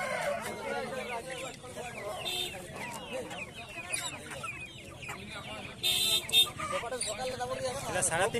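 A man talks nearby in a lively voice.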